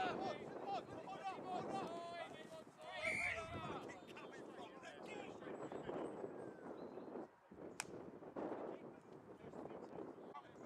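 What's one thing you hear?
Several young men shout and call out to each other outdoors.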